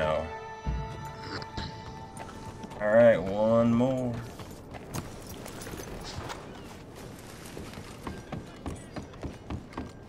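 Horse hooves clop on a dirt road.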